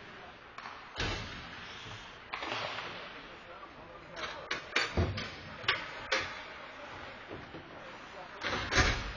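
Hockey sticks clack sharply against the puck in a large echoing rink.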